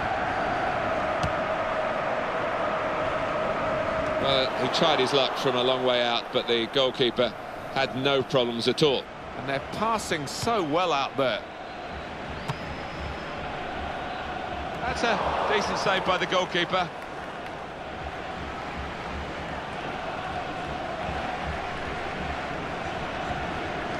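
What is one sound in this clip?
A stadium crowd murmurs and roars steadily in the background.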